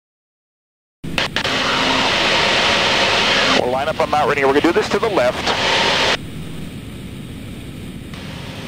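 A propeller plane's engine roars steadily with rushing wind in flight.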